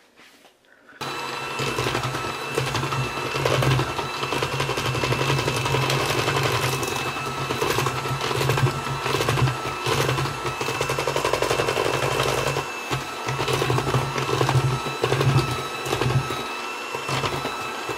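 An electric hand mixer whirs steadily as it beats batter.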